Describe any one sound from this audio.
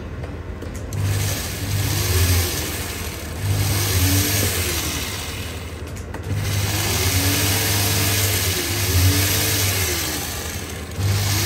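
A small rotary tool whirs as it grinds metal, speeding up and slowing down.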